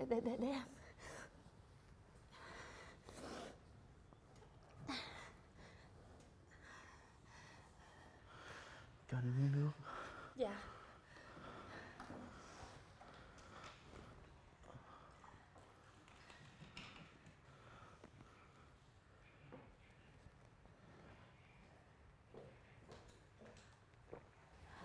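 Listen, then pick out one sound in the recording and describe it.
A young woman speaks with concern, close by.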